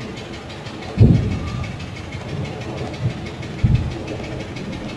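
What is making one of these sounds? Heavy explosions boom in the distance.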